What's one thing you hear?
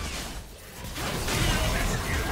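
A fiery blast bursts and crackles.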